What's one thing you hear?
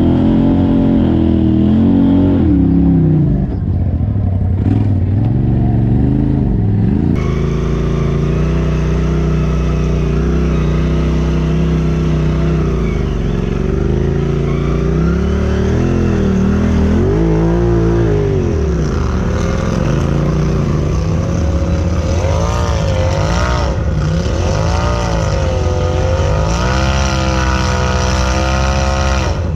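An off-road vehicle's engine revs and labours as it climbs over rocks.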